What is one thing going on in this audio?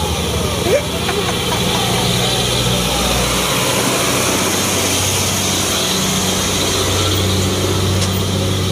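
A heavily loaded diesel truck labours uphill and passes close by.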